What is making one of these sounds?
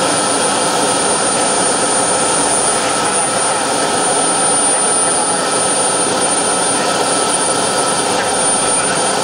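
A model jet's turbine engine roars and whines steadily up close.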